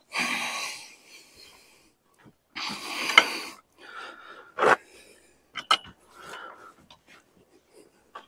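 Rusty metal parts squeak and grind as a crank turns them in short bursts.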